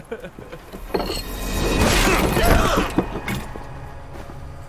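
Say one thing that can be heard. A body drops and thuds heavily onto a stone floor.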